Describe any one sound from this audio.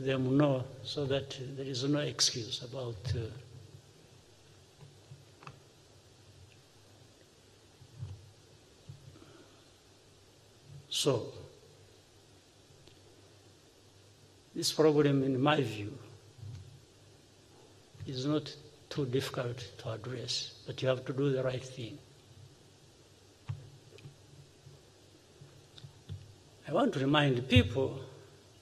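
A middle-aged man gives a speech calmly through a microphone, with long pauses.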